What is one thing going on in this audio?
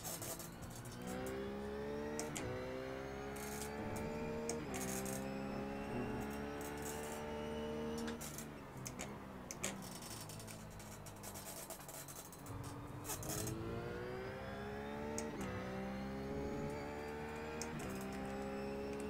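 A simulated race car engine accelerates hard through upshifts.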